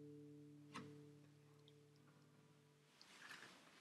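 A guitar chord rings out and fades.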